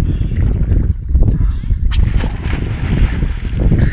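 A man splashes into water with a loud plunge.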